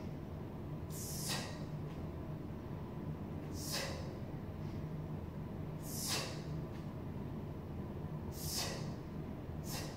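A woman exhales sharply in rhythm with each effort.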